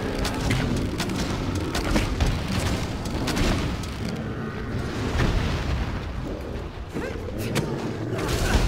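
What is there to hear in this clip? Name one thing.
Blows strike with sharp thuds.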